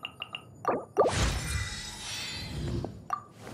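A bright shimmering chime swells up and slowly fades.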